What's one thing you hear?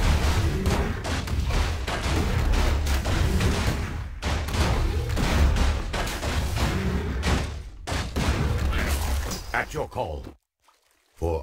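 Magic spells crackle and boom in a battle.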